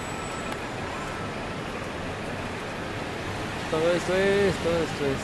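City traffic hums steadily in the street.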